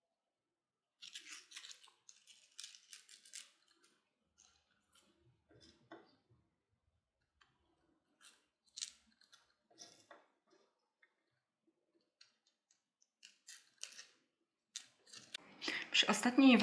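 Glittery paper strips rustle and crinkle between fingers.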